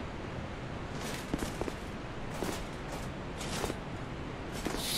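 Armoured footsteps thud and clink on stone.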